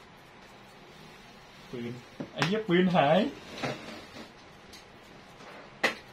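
Playing cards rustle as they are shuffled in a hand.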